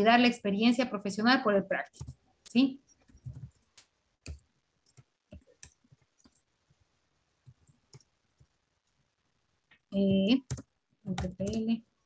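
A woman speaks calmly through an online call microphone, with pauses.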